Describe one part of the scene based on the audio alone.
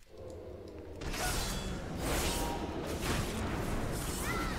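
Swords slash and clang in a fight.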